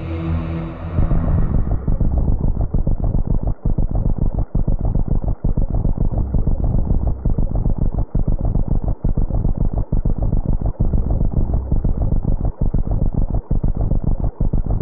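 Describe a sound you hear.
A monster sinks and dissolves with a loud, steady crackling rumble.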